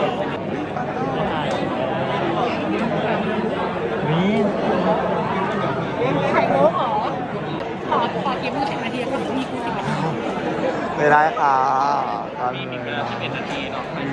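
A young man talks and laughs close by.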